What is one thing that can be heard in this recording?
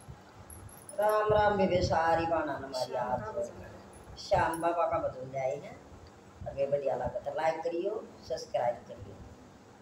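Women sing together in phrases, close by.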